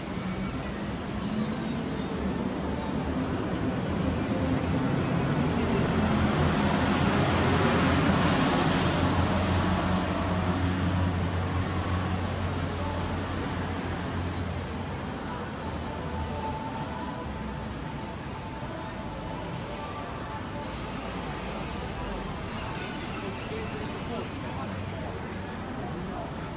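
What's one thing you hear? City traffic rumbles steadily along a busy street outdoors.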